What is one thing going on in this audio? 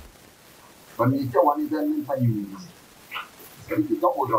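A man speaks calmly into a nearby microphone.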